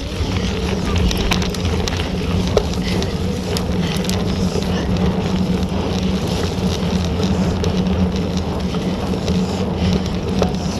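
Bicycle tyres roll over a muddy, bumpy track.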